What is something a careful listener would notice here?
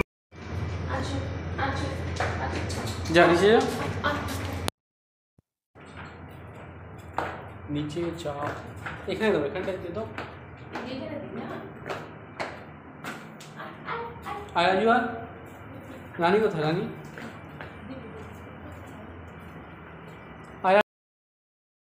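A young woman speaks softly to a dog close by.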